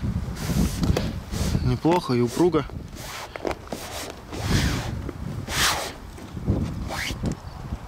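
A hand presses and rubs taut fabric with a soft rustle.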